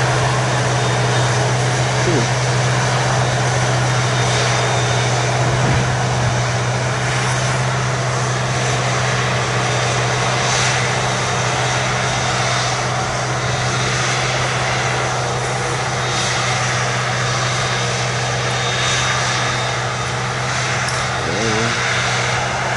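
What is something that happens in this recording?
A heavy harvester engine drones steadily nearby.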